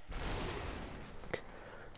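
A game enemy shatters with a sharp crack.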